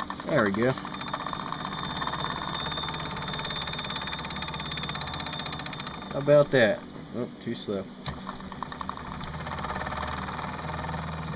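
A small toy steam engine chugs and whirs steadily.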